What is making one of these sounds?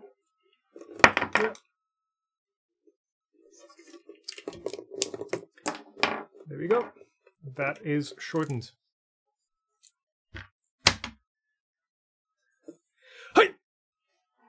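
Plastic parts click and snap together.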